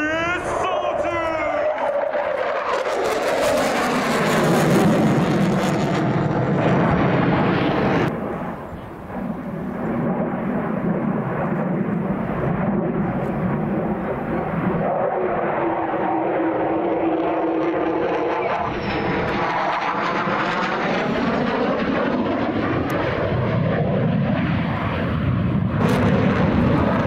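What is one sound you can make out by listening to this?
A jet engine roars loudly overhead, rising and falling in pitch as the fighter plane banks and turns.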